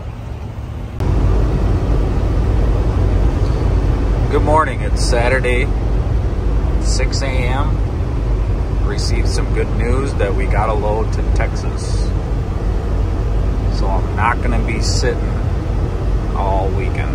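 A truck engine rumbles steadily from inside the cab while driving on a highway.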